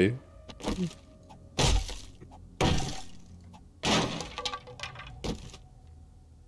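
A tool smashes against a wooden crate with heavy thuds.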